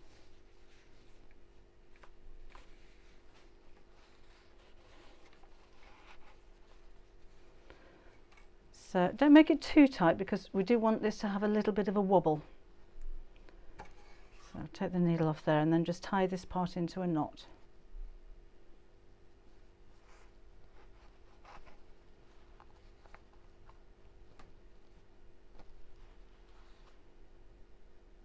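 Fabric rustles softly as hands fold and handle it.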